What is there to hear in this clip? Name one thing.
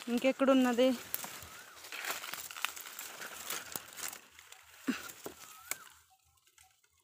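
Dry grass and twigs rustle close by.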